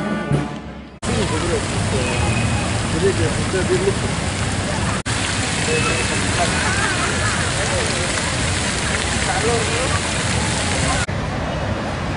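Water from a fountain splashes and sprays steadily.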